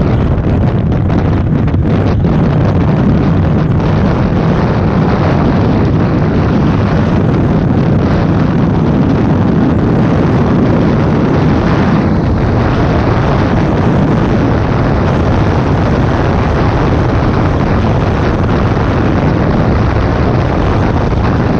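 Wind roars loudly and steadily past a moving motorcycle.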